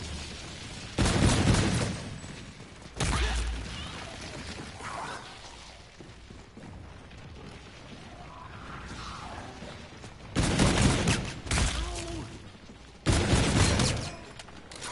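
Gunshots boom in loud bursts.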